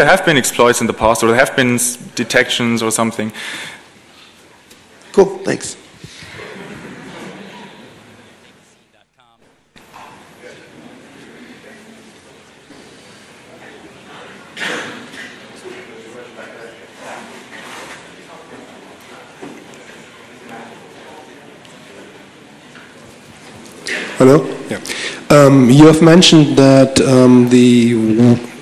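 A young man speaks calmly into a microphone.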